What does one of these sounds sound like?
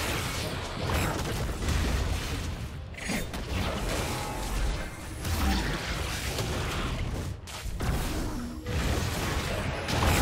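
Game spell effects crackle and whoosh during a battle.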